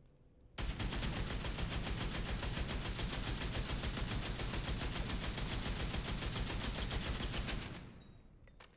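A rifle fires a long, rapid burst of automatic shots.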